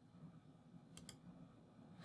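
Keys click on a laptop keyboard.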